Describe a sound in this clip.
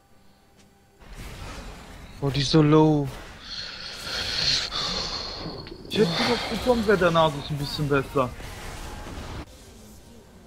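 Magic spells crackle and burst in a fast fight.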